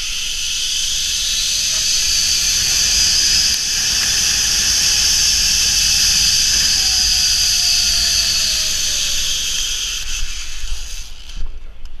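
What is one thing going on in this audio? A zip line pulley trolley whirs along a steel cable.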